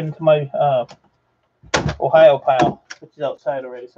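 A laptop lid snaps shut.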